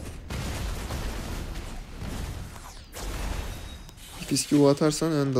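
Fantasy battle sounds of spell blasts and hits clash together.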